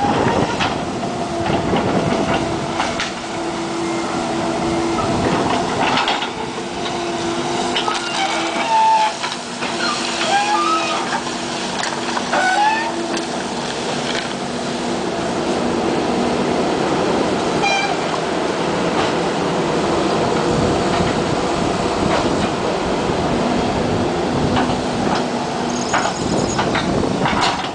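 Debris and broken wood crash and clatter as an excavator bucket digs.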